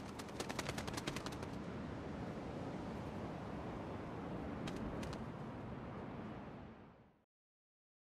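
Soft wind blows steadily and fades away.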